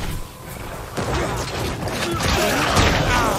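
Magic blasts crackle and burst amid clashing fighters.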